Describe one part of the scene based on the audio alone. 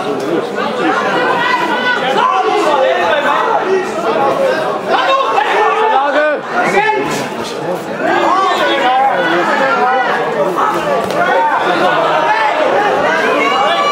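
Punches thud against bodies.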